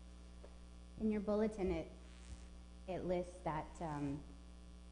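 A woman speaks into a microphone in an echoing hall.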